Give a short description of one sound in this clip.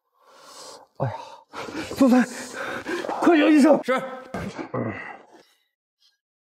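A man speaks close by in a strained, pained voice.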